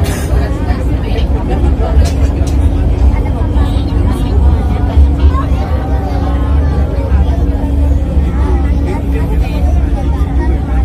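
A train rumbles steadily along an elevated track.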